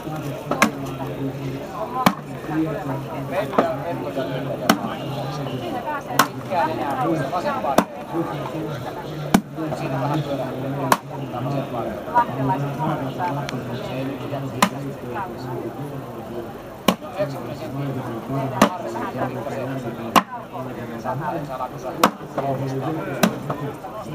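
An axe strikes and splits wood with sharp cracks, again and again.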